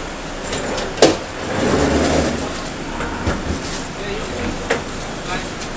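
Objects knock and bump against a wooden floor.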